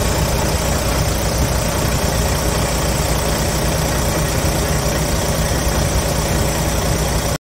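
A large diesel engine idles with a steady, loud rumble and clatter close by.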